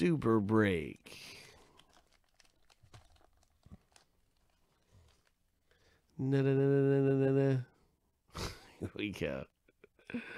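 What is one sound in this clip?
Plastic crinkles and rustles as it is handled.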